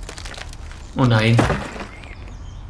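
A tree cracks and crashes to the ground.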